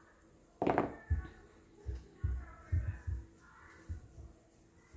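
Soft clay thumps dully as hands press it together.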